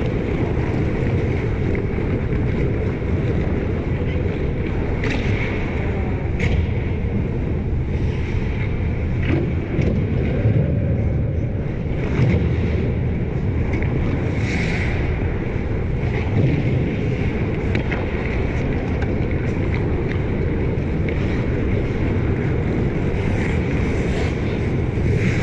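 Skates scrape and carve across ice in a large echoing arena.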